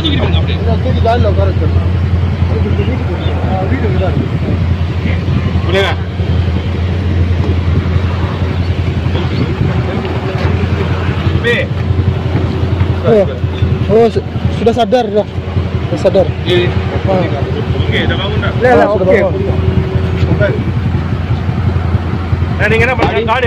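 Several men talk excitedly nearby outdoors.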